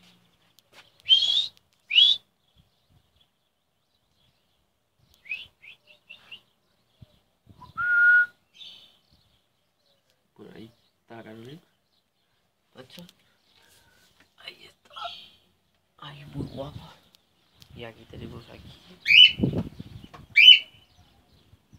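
Small caged parrots chirp and whistle.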